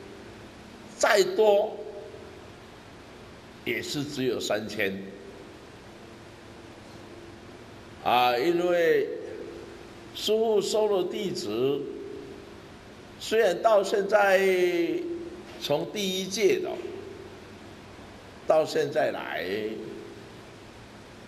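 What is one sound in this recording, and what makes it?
An older man speaks with animation into a close microphone, in short bursts with pauses.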